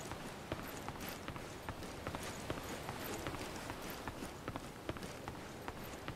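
Footsteps patter on wooden boards.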